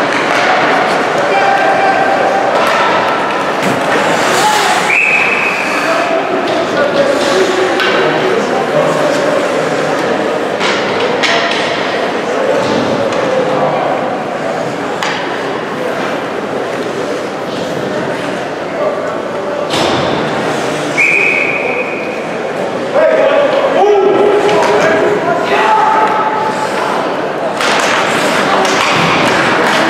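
A crowd of people talks and calls out in a large echoing rink.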